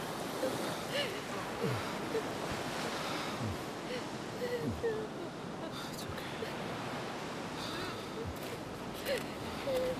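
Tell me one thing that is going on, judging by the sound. A young woman sobs close by.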